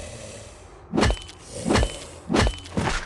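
Heavy blows thud and crack in a fight.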